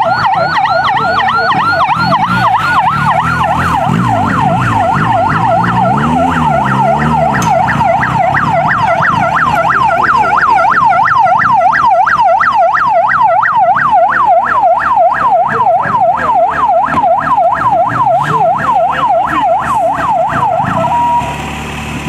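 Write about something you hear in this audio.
A siren wails rapidly up and down close by, then cuts off.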